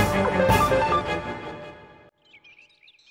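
Loud game music plays and then cuts off.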